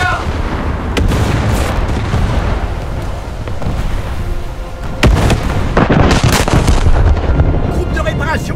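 Heavy naval guns boom and rumble.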